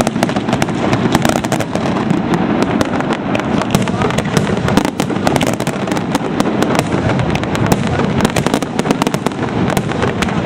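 Fireworks bang and crackle rapidly overhead.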